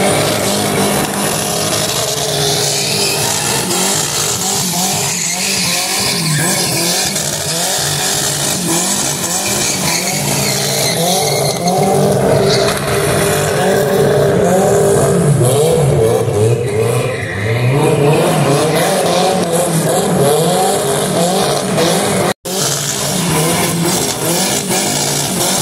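Tyres screech and squeal on asphalt.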